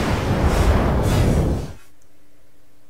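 A fiery blast roars loudly and then cuts off.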